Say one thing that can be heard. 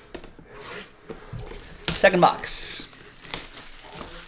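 Plastic wrap crinkles and tears as a box is unwrapped.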